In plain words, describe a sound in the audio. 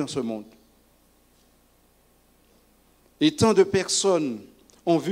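A middle-aged man preaches with emphasis into a microphone, with pauses between phrases.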